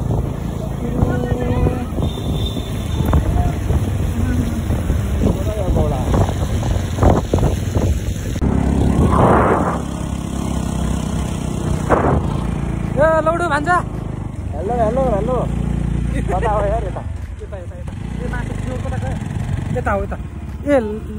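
Wind rushes loudly past the microphone on a moving motorbike.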